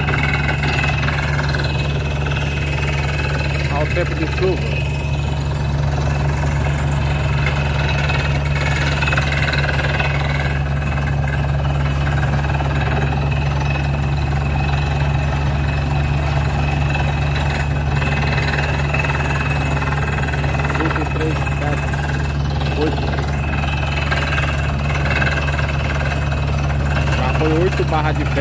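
A drilling rig's engine runs with a loud, steady drone.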